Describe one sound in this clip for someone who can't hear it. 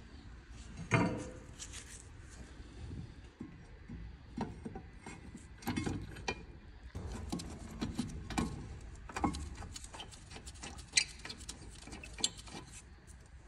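Metal parts clink and scrape.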